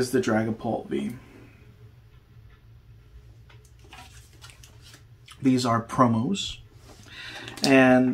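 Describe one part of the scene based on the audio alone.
Plastic cards click and rustle as they are handled.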